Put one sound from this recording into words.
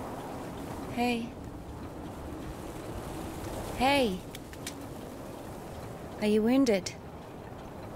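A young woman calls out a greeting a few times.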